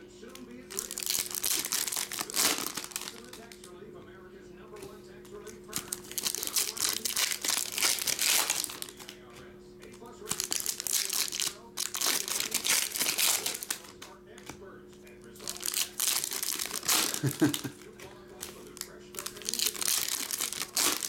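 Foil wrappers of trading card packs crinkle and rip as they are torn open.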